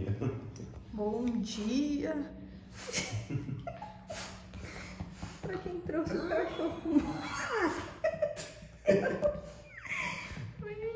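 A woman talks and laughs softly, close by.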